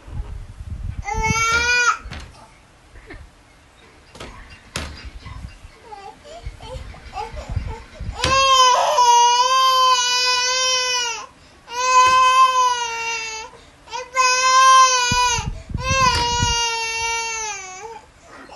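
A toddler cries loudly in long wailing bursts close by.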